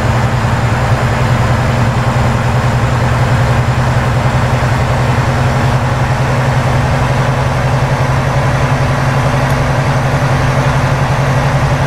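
Tyres roll along the road with a steady rushing noise.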